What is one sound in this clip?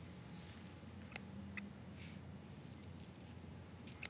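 Small shears snip a plant stem.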